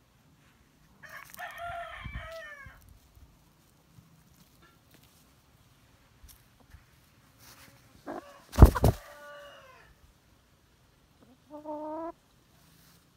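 A hen clucks and squawks close by.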